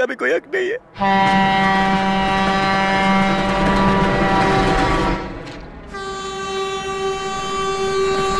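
A diesel train rumbles along the tracks.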